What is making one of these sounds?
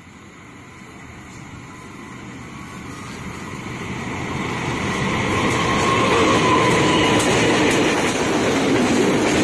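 A diesel locomotive approaches, growing louder, and rumbles past close by.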